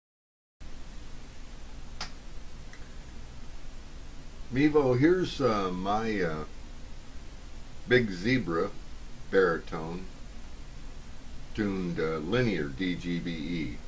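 Ukulele strings are plucked softly, close by.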